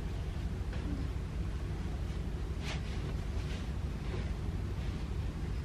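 Pillows thump softly as they are placed on a bed.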